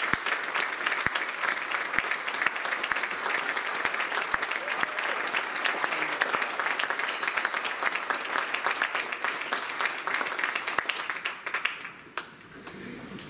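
An audience applauds loudly in a large echoing hall.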